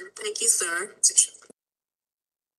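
A woman speaks through an online call.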